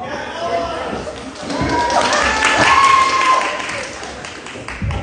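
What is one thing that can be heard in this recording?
Young women cheer and squeal with excitement in a hall.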